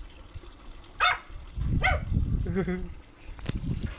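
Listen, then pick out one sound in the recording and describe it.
A small puppy yaps a few times in short, high bursts.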